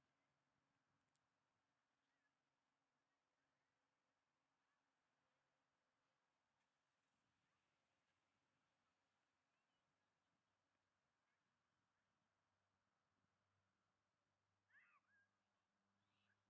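Several propeller planes drone faintly far overhead.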